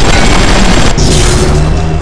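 A fiery blast roars.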